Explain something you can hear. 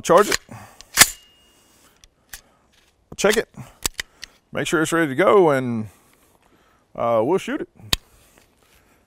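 A rifle's metal parts click and clack as it is handled.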